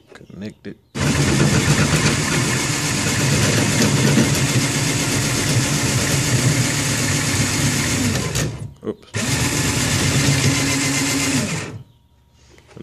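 A cordless drill whirs loudly with a steady whine, stops briefly, then runs again.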